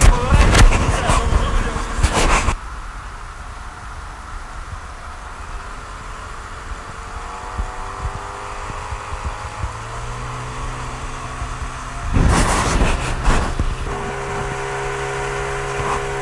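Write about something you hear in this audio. A small outboard motor drones as an inflatable boat runs at speed.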